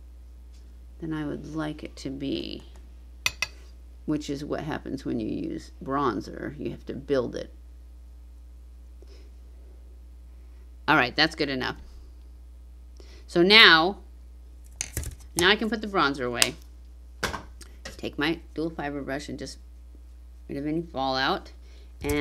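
An older woman speaks calmly and closely into a microphone, in short bursts with pauses.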